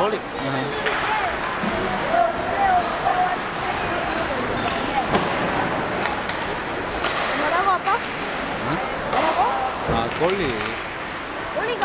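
A crowd of spectators chatters and shouts in a large echoing arena.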